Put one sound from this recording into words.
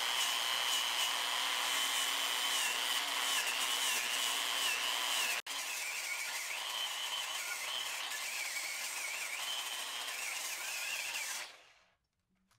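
A small electric tool whirs with a high, steady whine.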